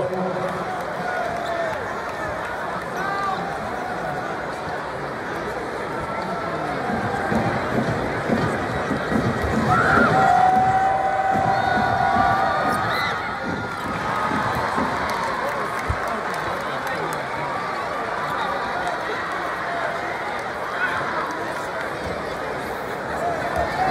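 A large crowd cheers and chatters loudly in a big echoing arena.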